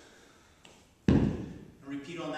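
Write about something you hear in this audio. A kettlebell thuds down onto the floor.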